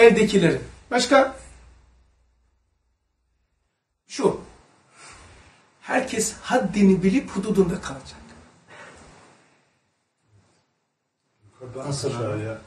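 An older man speaks calmly and thoughtfully close by, with pauses.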